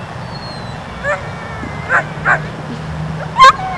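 A dog yelps and whines eagerly close by.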